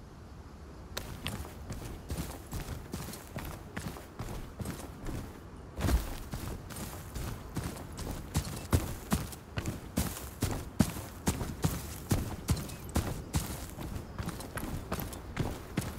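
Footsteps crunch quickly over dry ground and grass.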